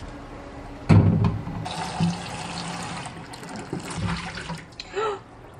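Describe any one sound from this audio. Water runs from a tap into a glass bowl.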